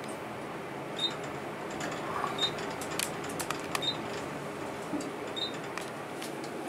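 An elevator chime dings softly at each floor.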